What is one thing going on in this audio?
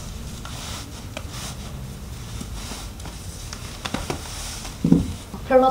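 Cloth rustles softly as socks are pulled on.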